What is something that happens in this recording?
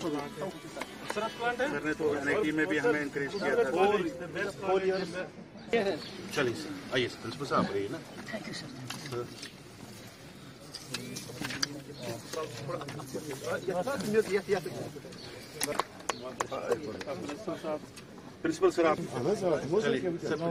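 Several men talk and chatter nearby outdoors.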